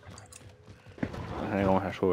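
A pistol clicks as it is drawn.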